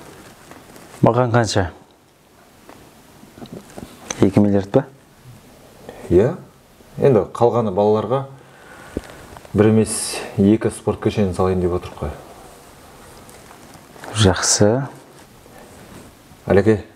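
A man with a deeper voice answers calmly, close by.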